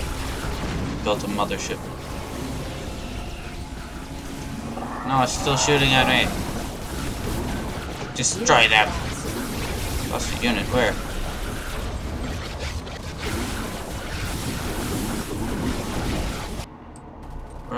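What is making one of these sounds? Game battle sounds of laser fire and explosions rumble on.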